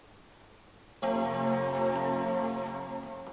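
A computer plays a loud, ringing startup chime.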